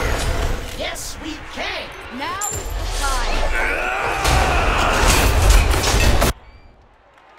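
Magical blasts and impacts crash and boom loudly.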